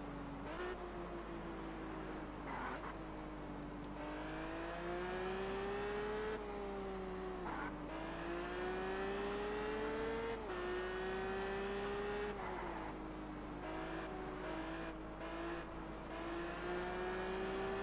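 A car engine revs steadily, rising and dropping in pitch as the gears shift.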